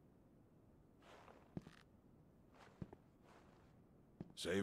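Footsteps echo on a stone floor.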